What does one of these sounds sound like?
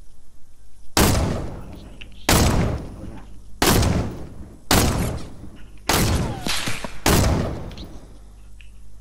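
A rifle fires loud, echoing shots one after another.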